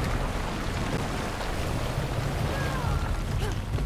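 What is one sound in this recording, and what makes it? Water rushes below.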